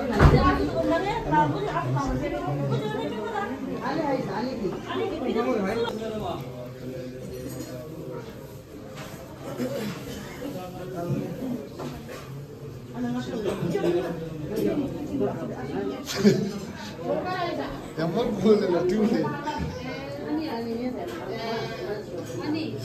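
Several men and women talk and chat nearby.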